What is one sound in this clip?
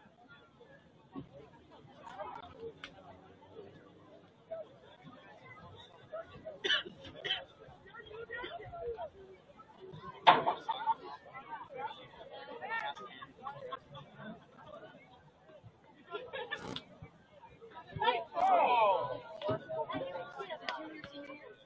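A crowd of spectators chatters and cheers outdoors at a distance.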